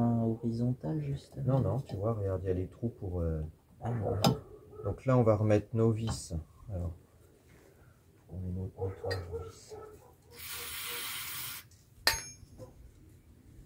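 Metal parts clink as a brake drum is handled.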